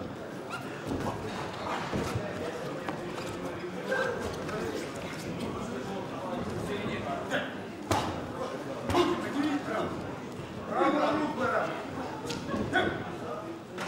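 Boxing gloves thud on bodies with sharp punches.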